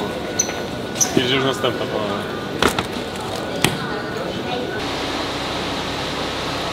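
Luggage trolleys rattle and clatter.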